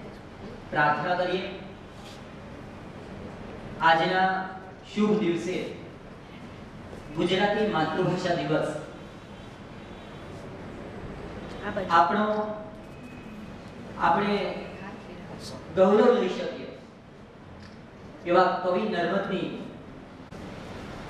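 A man chants in short, separate phrases with pauses between them.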